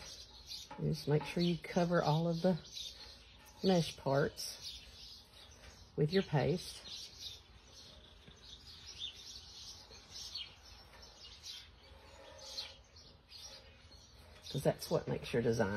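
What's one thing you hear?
A brush dabs paint onto a metal surface with soft scratchy strokes.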